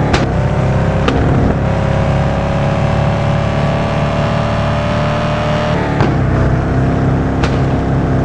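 Tyres screech on asphalt through sharp turns.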